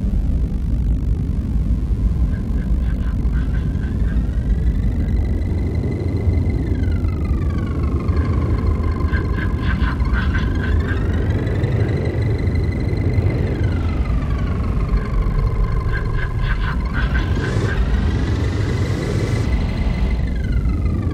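Wheels rumble over firm sand.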